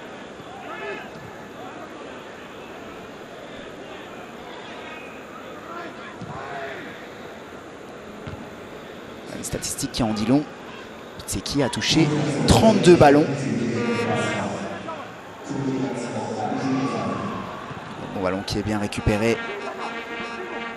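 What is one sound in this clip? A large stadium crowd murmurs steadily, then roars louder.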